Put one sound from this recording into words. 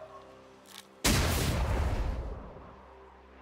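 A magic blast bursts with a loud whooshing roar and slowly dies away.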